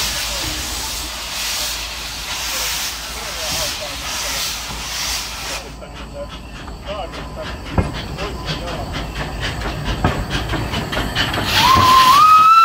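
A steam locomotive hisses and puffs steam.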